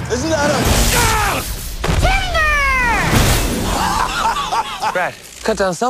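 A man yells loudly nearby.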